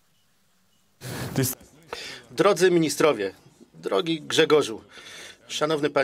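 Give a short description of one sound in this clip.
A middle-aged man speaks calmly and clearly into a microphone.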